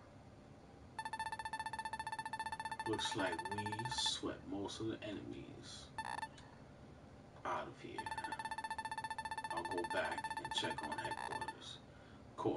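Rapid electronic beeps chatter.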